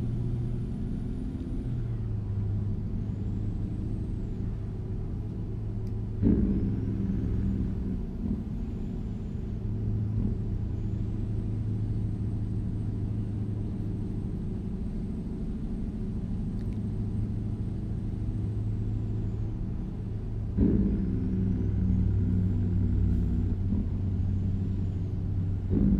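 A truck engine drones steadily at low pitch.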